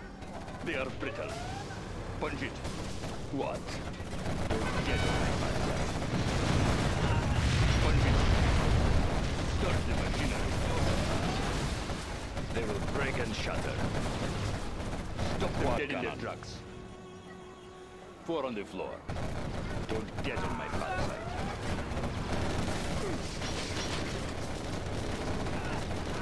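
Tank guns fire in sharp repeated bursts.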